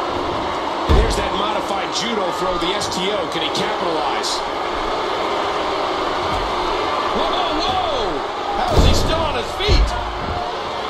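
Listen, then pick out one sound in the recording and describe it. A heavy body slams down onto a wrestling ring with loud thuds.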